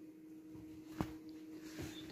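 A bag bumps against something hard with a dull knock.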